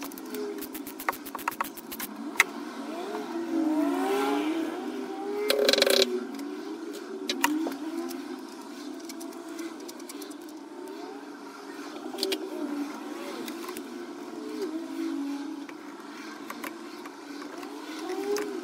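Rubber ignition leads click and rustle.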